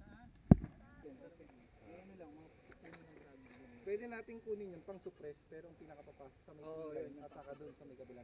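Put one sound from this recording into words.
Several men talk quietly nearby.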